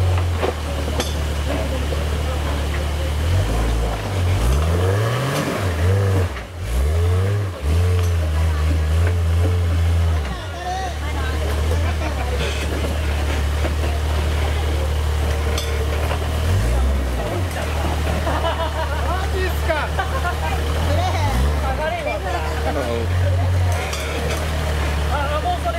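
Tyres grind and scrape over loose rocks.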